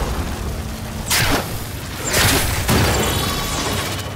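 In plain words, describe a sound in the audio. Gunfire rattles in quick bursts with sharp blasts.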